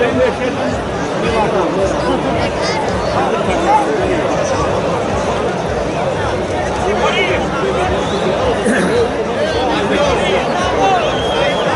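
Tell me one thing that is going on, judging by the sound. Men shout excitedly nearby.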